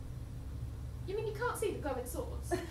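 Another young woman answers calmly.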